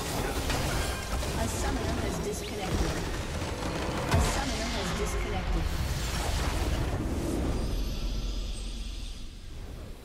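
Spell effects crackle and blast loudly in a fast fight.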